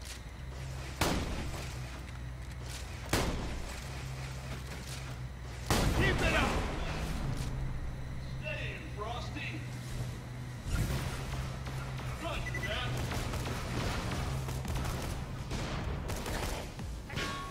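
Gunshots crack in loud, sudden bursts.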